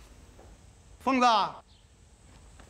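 An elderly man calls out a name loudly.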